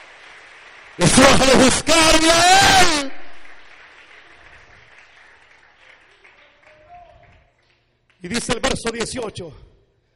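A man preaches loudly and with fervour into a microphone, heard through loudspeakers in a large echoing hall.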